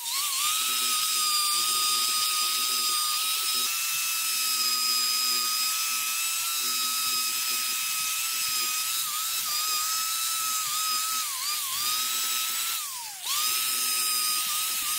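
A cordless drill whines steadily at high speed, dipping briefly as it loosens a bolt.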